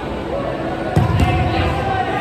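A football is kicked with a thud.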